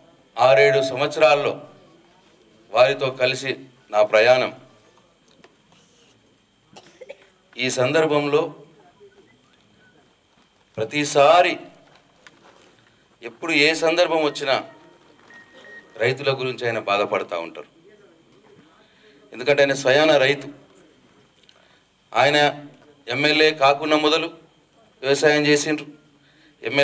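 A middle-aged man speaks forcefully into a microphone through a loudspeaker, in short bursts with pauses.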